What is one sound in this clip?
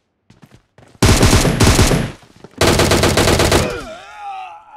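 An automatic rifle fires loud bursts of gunshots.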